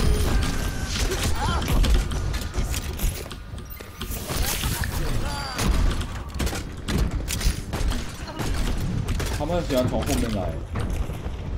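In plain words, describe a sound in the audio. A launcher fires explosive shots with loud blasts.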